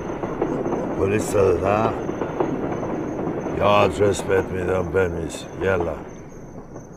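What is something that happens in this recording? An elderly man talks calmly into a phone nearby.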